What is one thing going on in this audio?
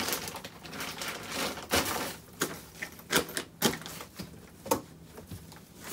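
Clothes rustle as a man packs a suitcase.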